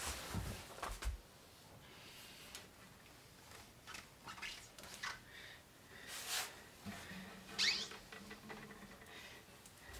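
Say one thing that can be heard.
A glass tank scrapes and knocks faintly as it is turned on a stand.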